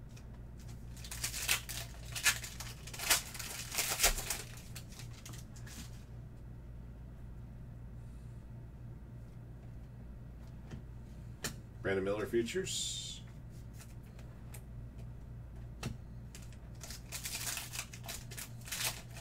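A foil card wrapper crinkles as it is torn open.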